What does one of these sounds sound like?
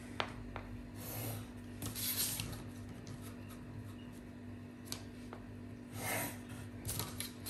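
A pencil scratches along paper.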